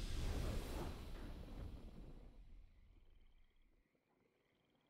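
A triumphant game fanfare rings out and fades away.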